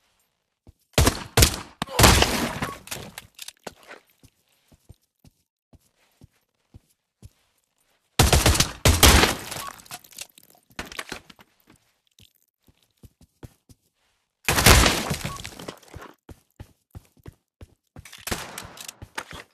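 Gunshots crack in quick bursts in an echoing hall.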